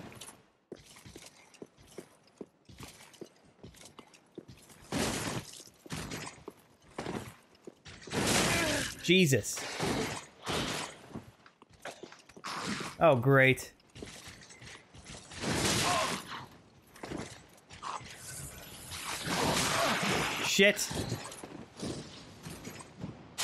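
Swords clash and strike against armour.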